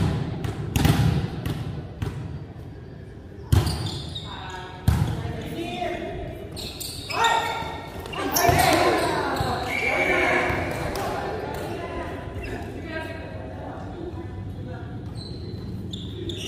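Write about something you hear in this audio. Sneakers squeak on the wooden floor.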